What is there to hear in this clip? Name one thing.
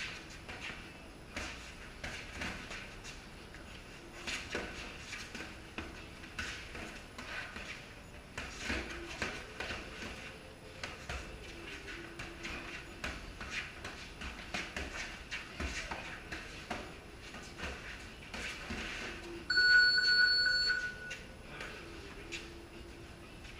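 Boxing gloves thud against punch mitts in quick bursts.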